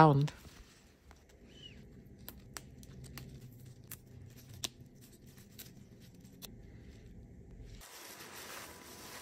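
Leafy greens rustle and crackle as hands handle them.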